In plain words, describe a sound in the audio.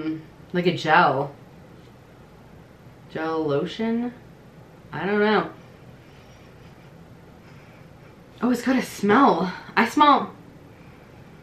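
A young woman talks to a nearby microphone in short, animated bursts with pauses.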